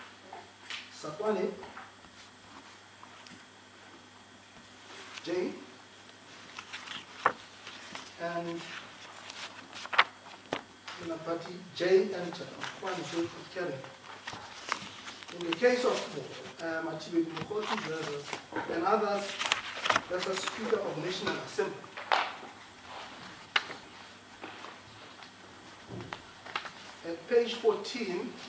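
A man speaks slowly and formally into a microphone, reading out with pauses.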